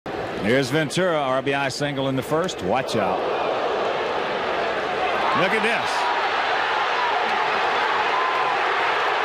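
A large crowd roars loudly in a stadium.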